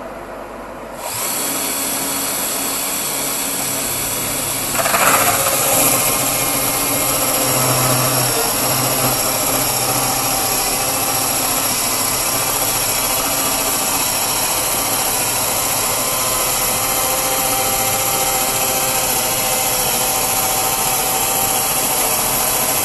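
A sawmill's motor starts up and runs.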